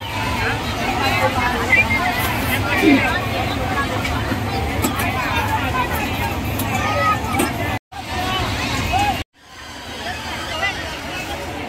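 A fairground ride rumbles as it spins.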